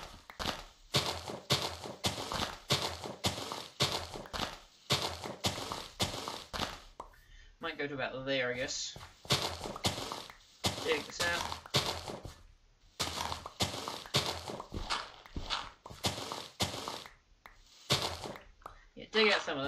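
Blocks of dirt crunch as they are dug out, again and again in quick succession.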